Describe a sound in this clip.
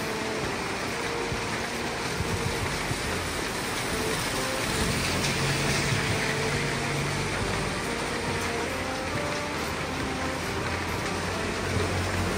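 Rain patters steadily on a wet street outdoors.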